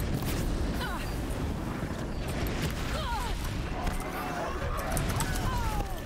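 Fiery explosions burst with a loud roar.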